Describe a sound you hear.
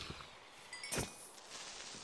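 Wooden blocks crack and break with dull knocks.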